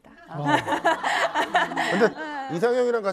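An elderly woman speaks with animation into a microphone.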